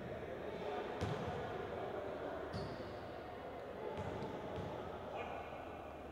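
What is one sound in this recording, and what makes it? A basketball bounces on a wooden court in a large echoing hall.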